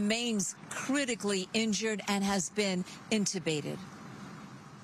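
A woman speaks steadily into a microphone, close by.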